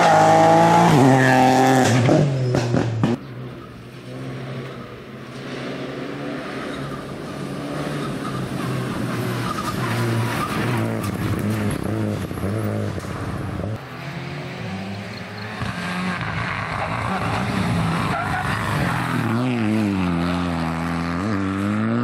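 A rally car's engine revs hard through the gears.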